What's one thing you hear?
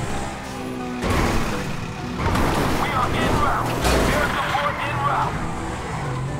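Tyres screech and skid on the road as a car spins.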